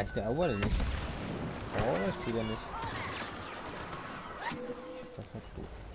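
A sci-fi blaster fires bursts of laser shots.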